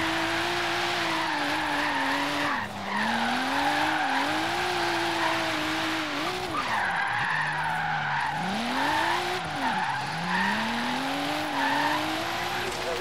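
Tyres screech as a car slides through bends.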